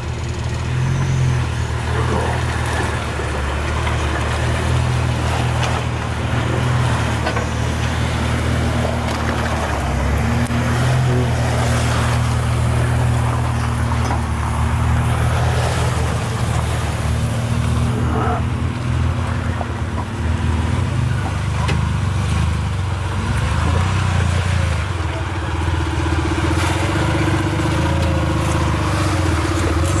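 An off-road engine idles and revs with a low rumble.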